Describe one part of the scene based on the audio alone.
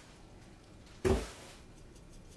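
A small part knocks on a table.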